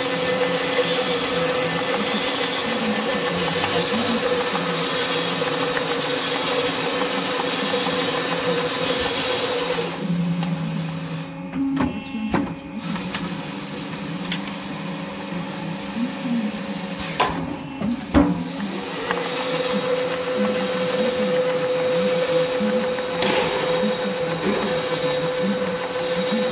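A machine hums and whirs steadily as it rolls and crimps sheet metal.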